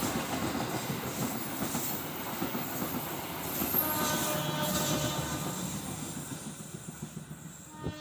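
Passenger train coaches rumble past, wheels clacking on the rails, then fade away.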